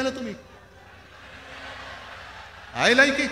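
A large crowd cheers and claps.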